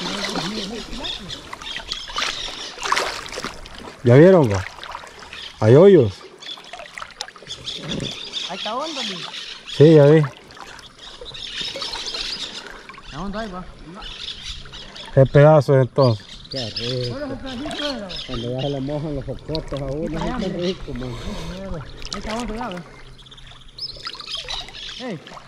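Water swirls and laps as people wade through a river.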